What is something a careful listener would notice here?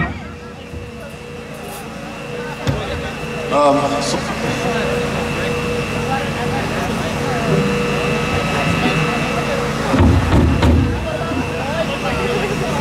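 An electric guitar plays outdoors.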